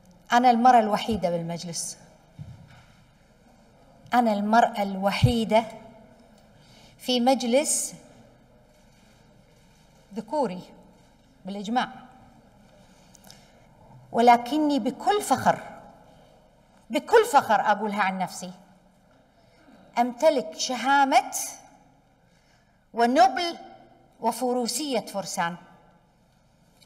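A middle-aged woman speaks deliberately into a microphone, in short phrases with pauses, in a large echoing hall.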